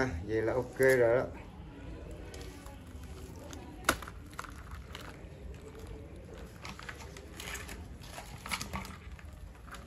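Crabs scratch and click against a plastic basket.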